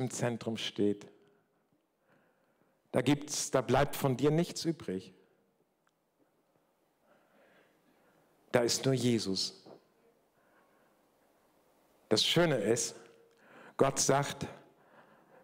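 An elderly man speaks calmly through a microphone in a large echoing room, with pauses between phrases.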